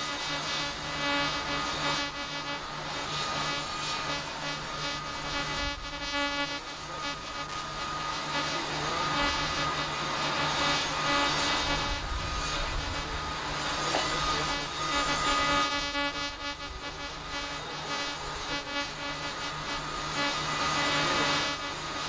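Jet engines roar and whine loudly nearby.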